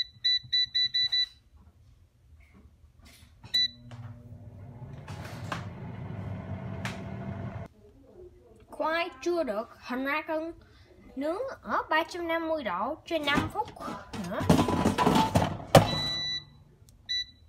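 An appliance beeps quickly several times as buttons are pressed.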